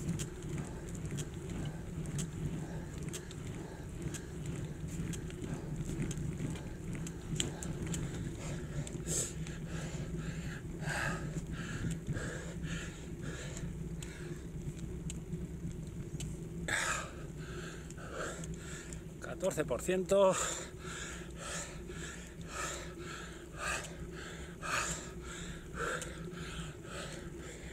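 Wind rushes and buffets past a moving bicycle.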